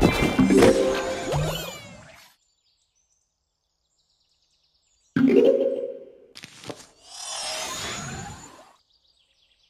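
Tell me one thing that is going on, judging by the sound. Cartoonish game sound effects chime, zap and whoosh in short bursts.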